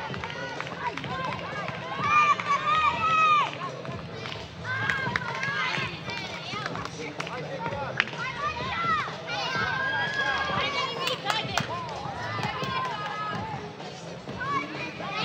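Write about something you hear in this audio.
Young girls shout and call out to each other outdoors.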